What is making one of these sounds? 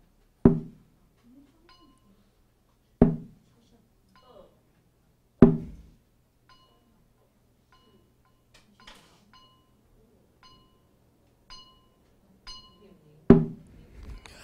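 A mallet strikes a resonant wooden instrument with loud, slow knocks that ring briefly.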